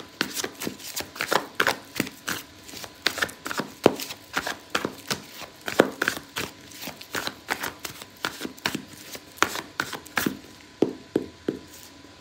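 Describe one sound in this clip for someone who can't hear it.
Playing cards shuffle in the hands with rapid, crisp clicks.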